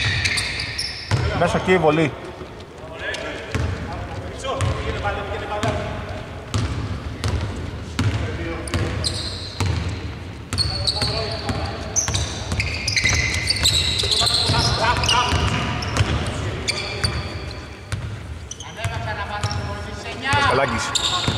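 A basketball bounces on a hardwood court in a large echoing arena.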